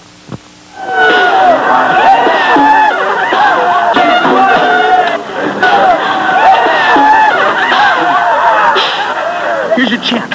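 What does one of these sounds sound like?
Several young men sing together loudly.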